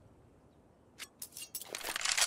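A knife is drawn with a quick metallic scrape.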